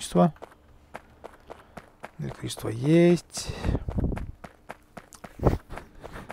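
Footsteps tap softly on dry ground.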